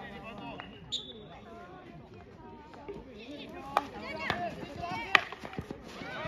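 A field hockey stick strikes a ball with a sharp crack.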